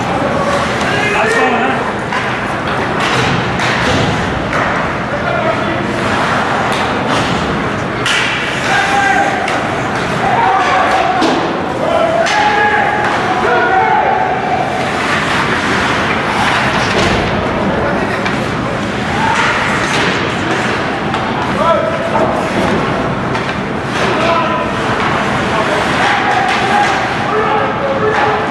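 Skates scrape and hiss on the ice.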